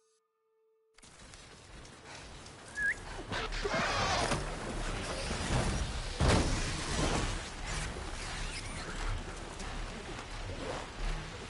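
Wind rushes loudly past during a fast flight.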